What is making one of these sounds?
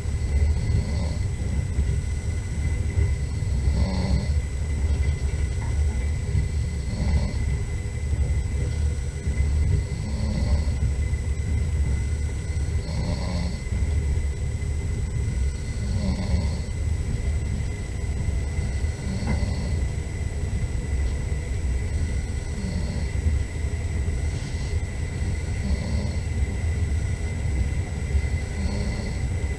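Tyres roll over a snowy road.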